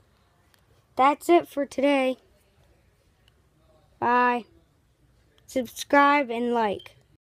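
A boy speaks close to the microphone in short, lively bursts.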